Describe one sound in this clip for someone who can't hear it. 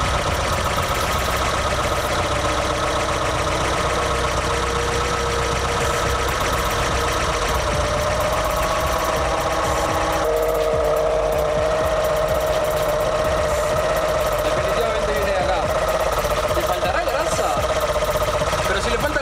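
A vehicle's drivetrain whines steadily up close.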